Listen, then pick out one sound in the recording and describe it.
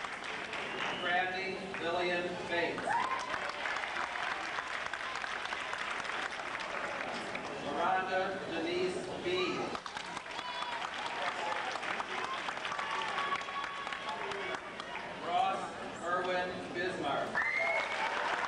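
A man reads out through a loudspeaker, echoing in a large hall.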